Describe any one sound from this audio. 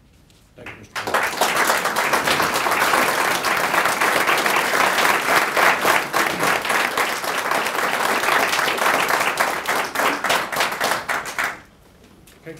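A group of people applaud steadily.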